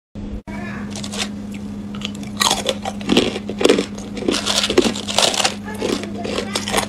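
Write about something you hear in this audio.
A young woman crunches loudly on ice close to the microphone.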